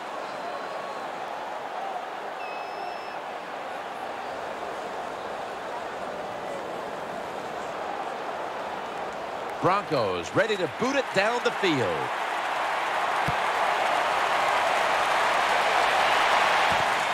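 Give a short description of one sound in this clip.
A stadium crowd roars steadily, swelling louder toward the end.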